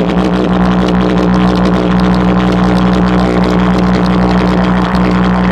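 A small speaker plays loud music with a deep, booming bass.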